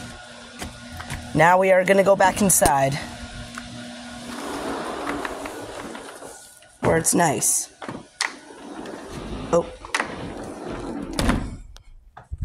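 A sliding glass door rolls along its track and thuds shut.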